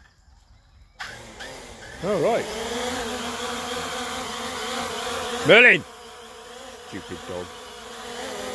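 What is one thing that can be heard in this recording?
A drone's motors start up and whir steadily with a high buzzing hum.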